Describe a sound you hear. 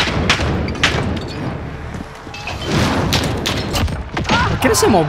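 Gunshots ring out sharply, echoing.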